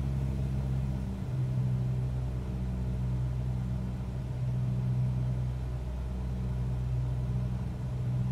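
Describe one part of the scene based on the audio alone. A small propeller plane's engine hums steadily at low power.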